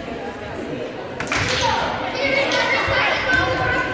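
A volleyball is struck with a thump.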